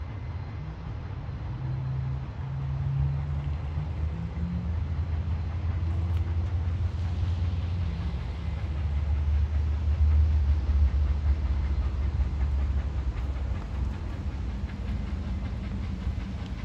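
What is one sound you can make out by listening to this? A steam locomotive chugs heavily in the distance with a deep, steady rumble.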